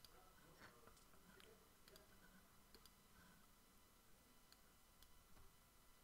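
Playing cards riffle as they are shuffled in the hands.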